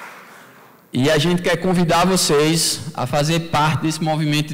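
A young man speaks into a microphone over loudspeakers in a large hall.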